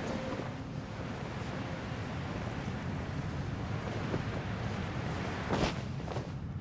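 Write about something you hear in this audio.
Wind rushes loudly past a gliding figure.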